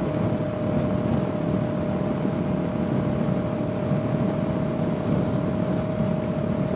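A parallel-twin cruiser motorcycle engine hums while cruising at highway speed.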